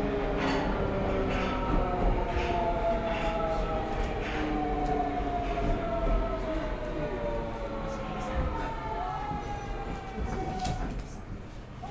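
An electric train's motor whines and slowly falls in pitch as the train comes to a stop.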